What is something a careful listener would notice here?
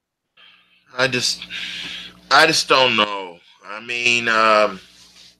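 An older man speaks with animation over an online call.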